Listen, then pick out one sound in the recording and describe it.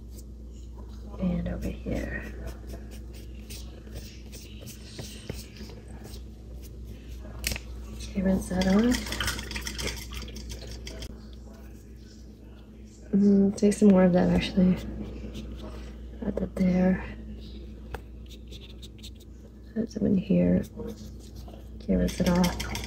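A paintbrush dabs and brushes softly on paper.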